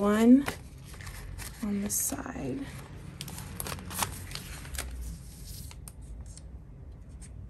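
Paper stickers rustle and crinkle as hands peel them from a sheet.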